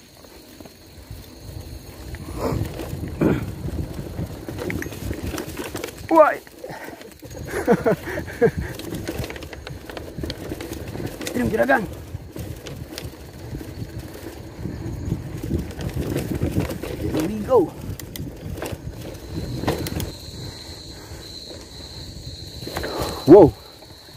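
Bicycle tyres rumble and rattle over a bumpy dirt track.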